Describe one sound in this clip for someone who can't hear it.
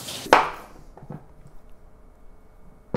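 A knife cuts on a wooden board.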